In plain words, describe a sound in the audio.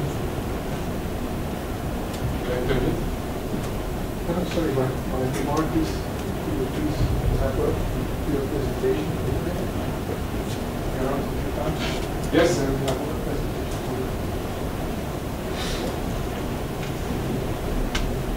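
A man lectures calmly through a microphone in a large room.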